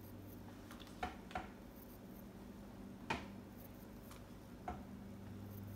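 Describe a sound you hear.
A plastic cup knocks lightly against a hard surface a few times.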